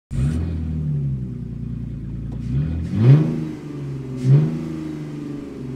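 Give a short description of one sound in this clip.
A sports car engine idles with a low rumble and revs up sharply several times.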